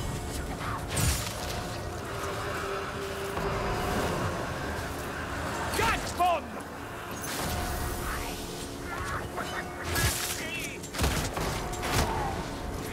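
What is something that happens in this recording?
A gun fires sharp single shots.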